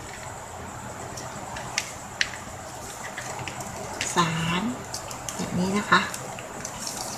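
Plastic ribbon rustles and crinkles as it is folded by hand.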